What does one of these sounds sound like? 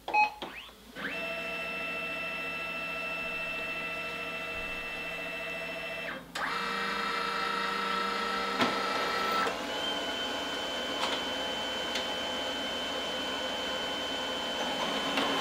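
A printer hums and whirs steadily.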